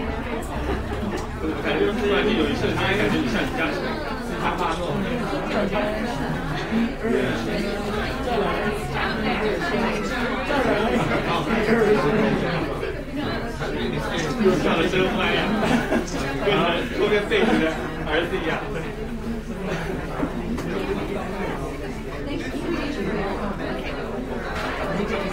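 A crowd of men and women chatter all around in a room.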